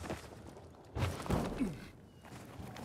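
Hands slap and grab onto a metal ledge.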